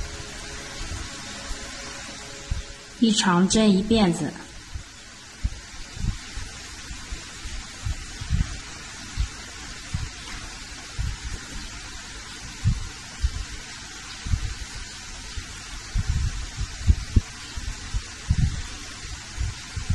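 A crochet hook softly clicks and rustles through yarn.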